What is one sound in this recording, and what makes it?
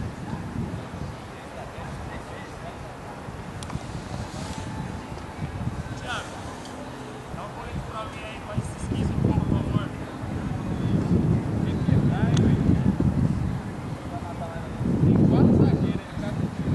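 Young men talk quietly nearby outdoors.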